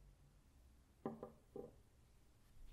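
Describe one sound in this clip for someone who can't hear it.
Metal parts knock and clink onto a hard surface.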